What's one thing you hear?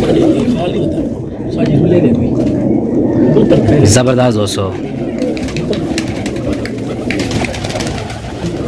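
Pigeons coo steadily in a low, burbling chorus.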